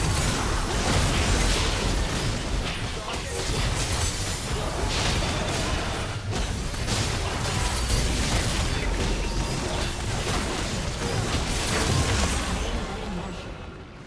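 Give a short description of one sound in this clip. Video game spells crackle and boom during a battle.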